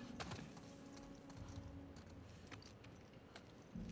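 Footsteps crunch over broken glass and debris.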